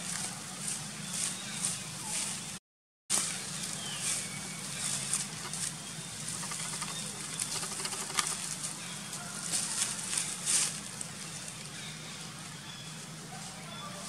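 Dry leaves rustle and crackle as small monkeys move over the ground.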